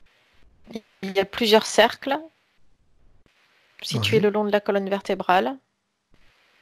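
A man speaks calmly and softly over an online call.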